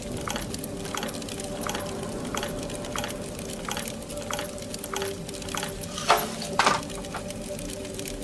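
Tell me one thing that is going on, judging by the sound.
Metal dials of a combination lock click as they turn.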